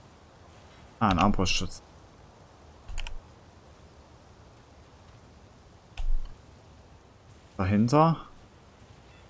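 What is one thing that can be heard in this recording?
A young man speaks in short, animated bursts close to a microphone.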